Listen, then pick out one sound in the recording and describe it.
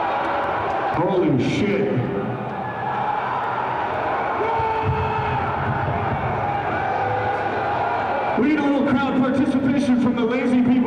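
A man sings and shouts into a microphone over loudspeakers.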